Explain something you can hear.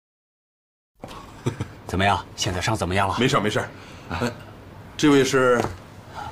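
A middle-aged man speaks cheerfully and animatedly at close range.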